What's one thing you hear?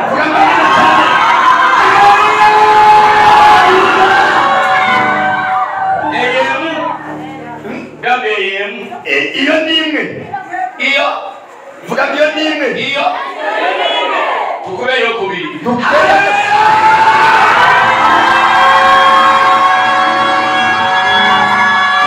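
A crowd sings loudly through loudspeakers in an echoing hall.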